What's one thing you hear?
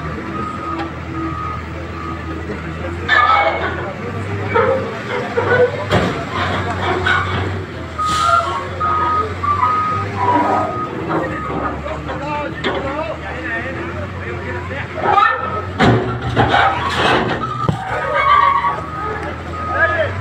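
Men talk loudly nearby, outdoors.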